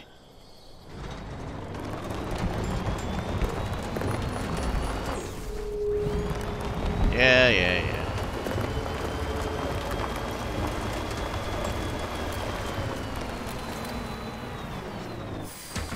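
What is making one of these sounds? A buggy's engine rumbles as it drives over rough rocky ground.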